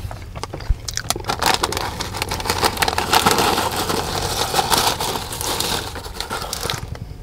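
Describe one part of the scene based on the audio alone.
A plastic snack bag crinkles and rustles.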